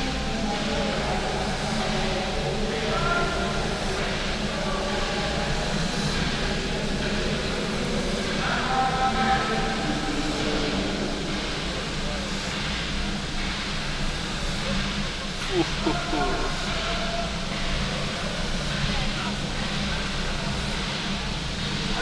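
A steam locomotive idles with a steady low rumble in a large echoing hall.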